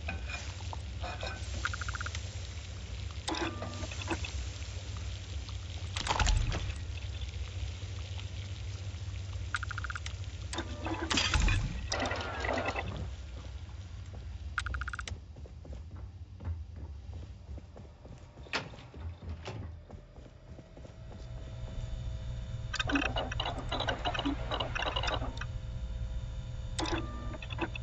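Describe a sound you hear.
Short electronic beeps sound as menu options are selected.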